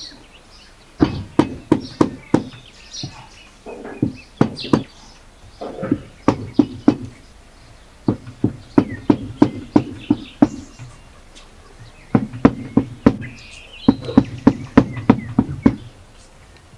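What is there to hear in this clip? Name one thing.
A cleaver chops rapidly on a wooden board with sharp knocks.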